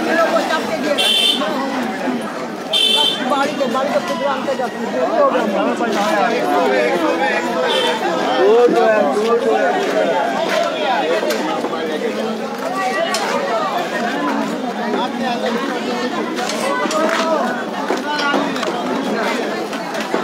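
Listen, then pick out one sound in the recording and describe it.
A busy crowd of men and women chatter all around, outdoors.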